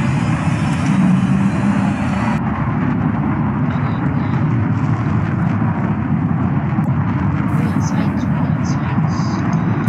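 A twin-engine jet roars in flight.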